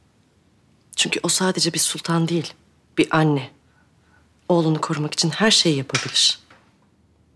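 A woman speaks firmly and calmly, close by.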